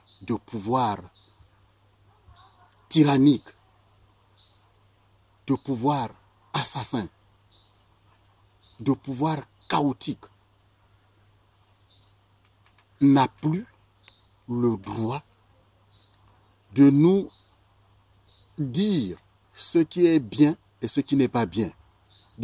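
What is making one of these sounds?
A middle-aged man speaks calmly and deliberately, close to the microphone, with pauses between phrases.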